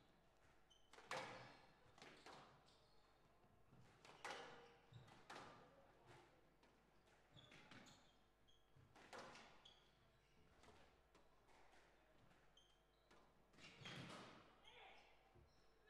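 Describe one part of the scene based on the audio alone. A squash ball is struck hard and smacks off the walls, echoing in a large hall.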